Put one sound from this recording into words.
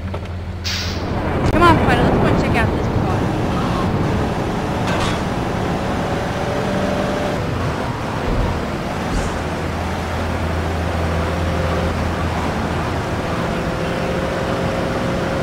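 A car engine hums steadily as a car drives along.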